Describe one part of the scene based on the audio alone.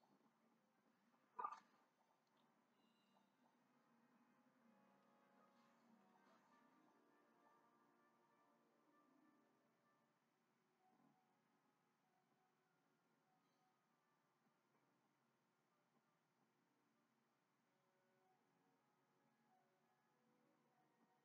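Video game music plays faintly through a television speaker.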